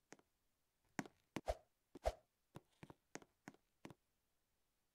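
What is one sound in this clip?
Light game footsteps tap in quick steps.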